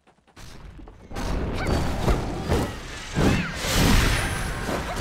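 Blows land with heavy impacts and bursts.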